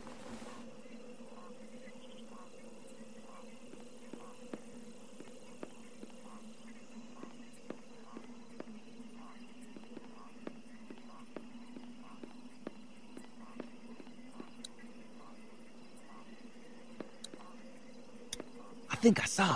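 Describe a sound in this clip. Footsteps tread softly at an even pace.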